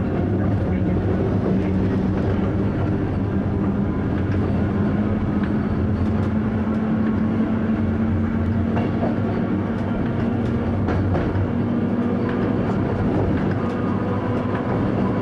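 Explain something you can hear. A train's engine hums steadily as it rolls along the track.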